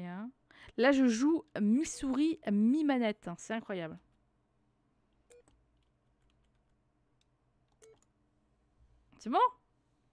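Keypad buttons click softly as a code is entered.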